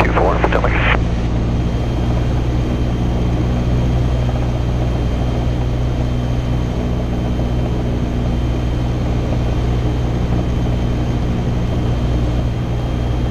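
A small propeller plane's engine drones steadily inside the cabin.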